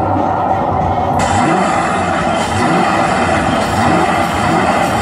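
Loud pop music plays through loudspeakers outdoors.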